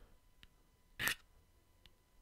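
A match strikes sharply.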